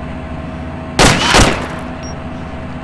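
A rifle fires two loud shots in quick succession, echoing outdoors.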